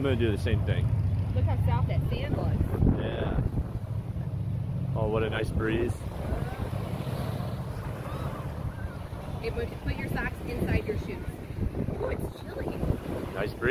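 Small waves lap at the shore.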